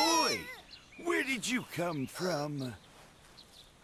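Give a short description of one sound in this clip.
An elderly man speaks gently and with surprise.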